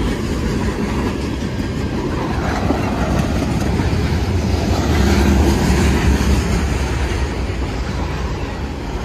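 Train wheels clack over the rail joints.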